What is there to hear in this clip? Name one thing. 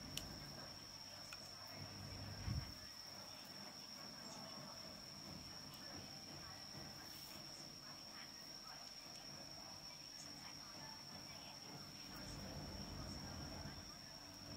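A cord rustles and scrapes softly as hands weave it into a braid.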